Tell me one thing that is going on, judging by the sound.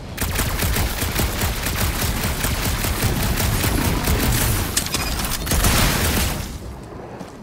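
A blaster fires in rapid bursts of shots.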